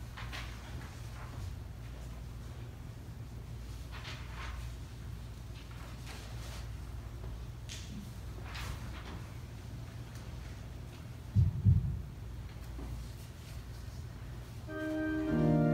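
A woman reads aloud softly in a large echoing room.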